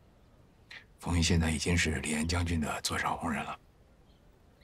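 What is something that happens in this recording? A man speaks calmly and quietly nearby.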